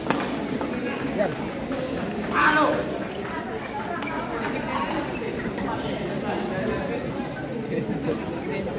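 Voices murmur and call out across the hall.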